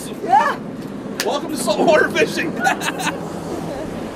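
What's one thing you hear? A man talks excitedly nearby.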